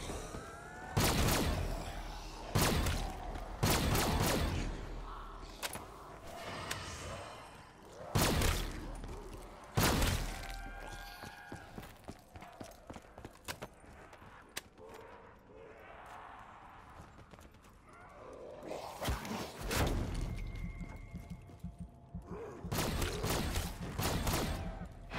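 Gunfire bursts loudly in short rapid volleys.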